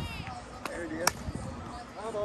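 A bat strikes a softball with a sharp crack.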